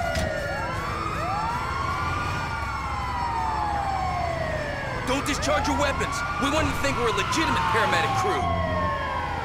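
Sirens wail loudly, rising and falling.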